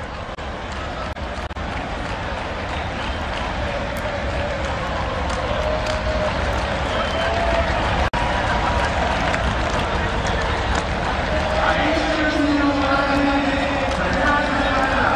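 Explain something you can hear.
A large stadium crowd cheers and roars steadily, growing louder.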